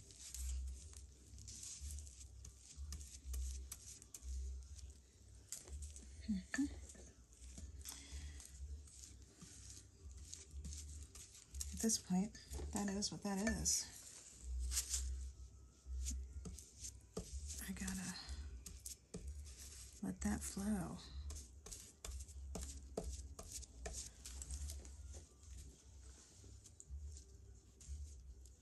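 A brush swishes and scrapes softly across a flat surface.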